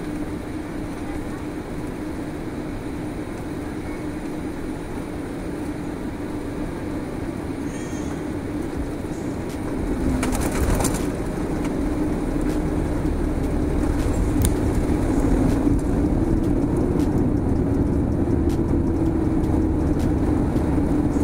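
A jet engine hums steadily inside an airliner cabin.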